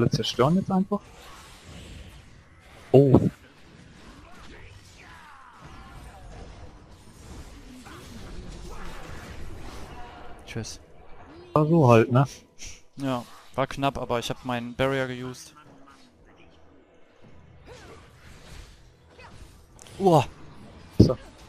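Video game spell effects zap and clash in short bursts.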